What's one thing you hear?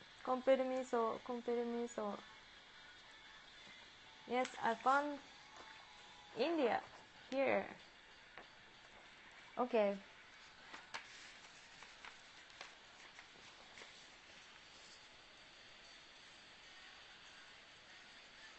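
Paper rustles as it is folded.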